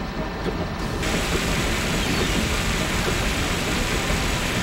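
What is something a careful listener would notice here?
A water hose sprays with a steady hiss.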